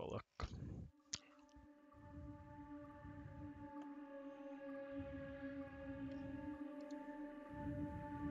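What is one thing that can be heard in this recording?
Low, steady droning music plays from a game.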